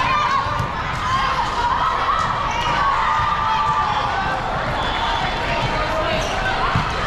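A crowd of girls and adults chatters and calls out in a large echoing hall.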